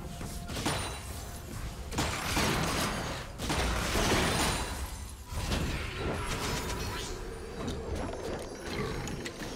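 Video game spell effects whoosh and crackle in a battle.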